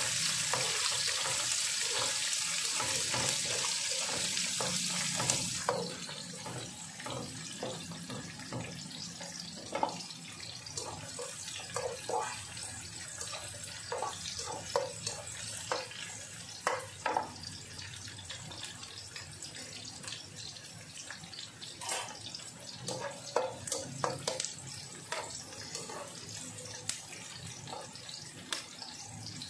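Onions sizzle in hot oil in a pan.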